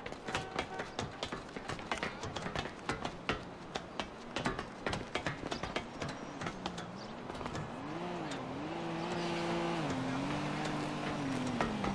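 Hands and feet clank on a metal ladder rung by rung.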